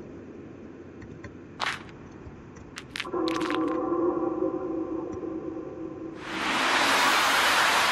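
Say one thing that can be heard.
A fire crackles.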